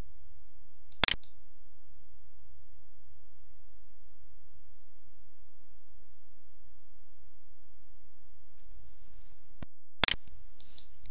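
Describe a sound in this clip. A mouse clicks.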